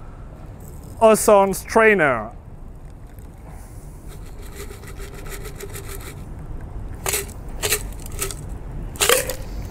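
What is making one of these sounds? Liquid pours from a shaker into a glass.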